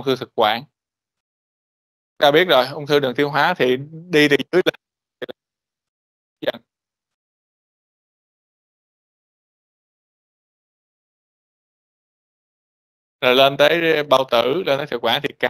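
A man lectures through a microphone over an online call, in bursts separated by long pauses.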